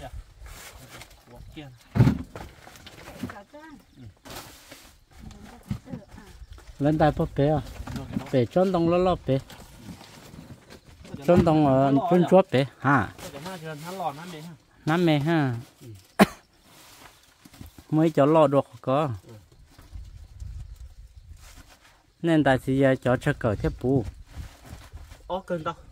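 Plastic sacks rustle and crinkle as they are handled.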